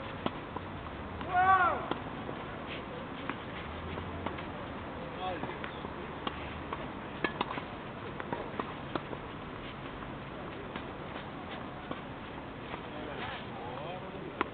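Tennis balls are struck with rackets in sharp, hollow pops.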